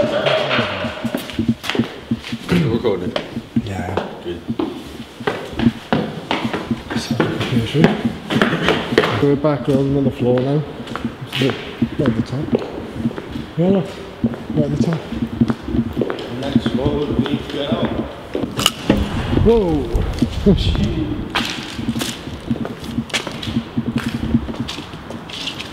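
Footsteps scuff and tap on a hard floor.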